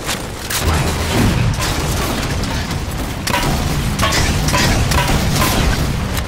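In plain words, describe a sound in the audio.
Energy weapons fire in rapid bursts with loud zaps.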